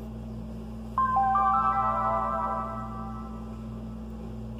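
A handheld game console plays a short chiming startup tune.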